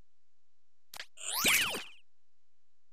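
A bright video game chime rings out.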